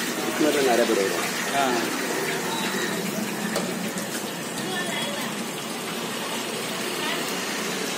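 A hand squelches and tosses a sticky mixture in a metal pot.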